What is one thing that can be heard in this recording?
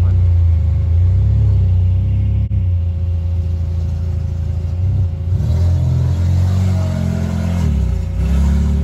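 A tow truck engine idles with a low, steady rumble.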